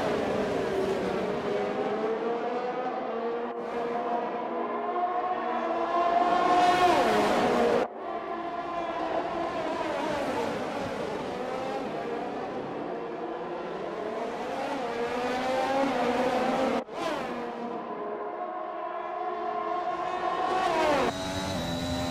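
Racing car engines whine loudly, rising and falling in pitch as they speed past.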